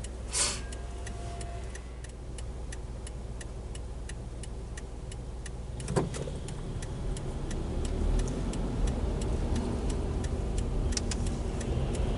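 A car's turn signal ticks steadily.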